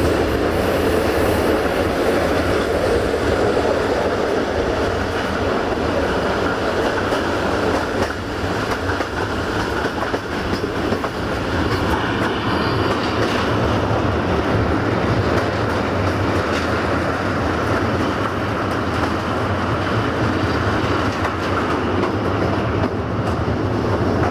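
A train rumbles along the tracks with wheels clattering steadily.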